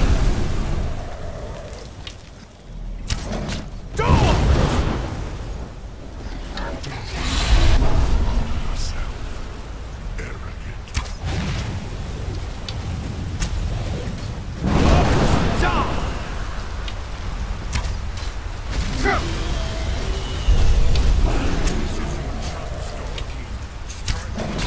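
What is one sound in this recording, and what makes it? A dragon roars loudly.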